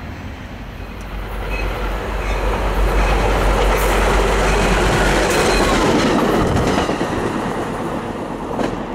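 A passenger train roars past close by at speed.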